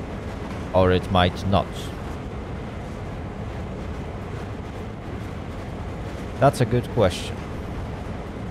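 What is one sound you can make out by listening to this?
Train wheels roll and clatter over rails.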